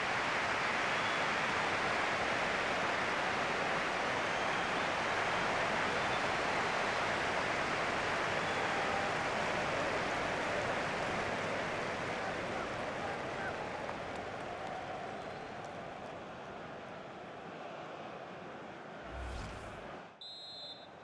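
A large stadium crowd roars and cheers, then slowly fades.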